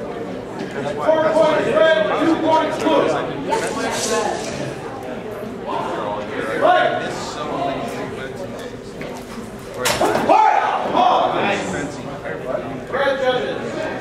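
A man calls out loudly.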